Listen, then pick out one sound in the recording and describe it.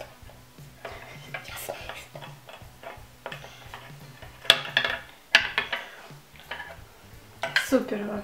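Plastic toy pieces click and clatter.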